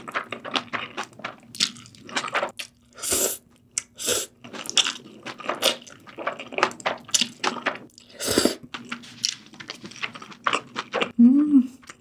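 A young woman slurps noodles loudly and chews wetly close to a microphone.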